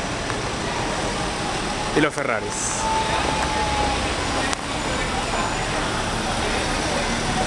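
Traffic hums steadily on a city street outdoors.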